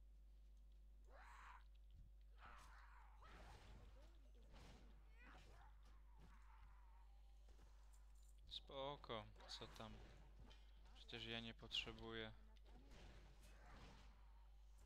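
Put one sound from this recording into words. Punches and kicks land with sharp thuds and whooshes.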